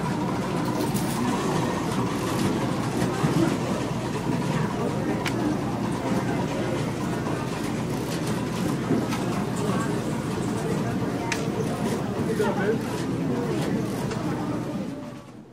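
A crowd of people murmurs and chatters in a large, echoing hall.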